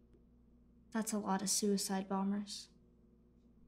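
A boy speaks quietly and hesitantly nearby.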